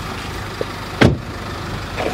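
A car door thumps shut.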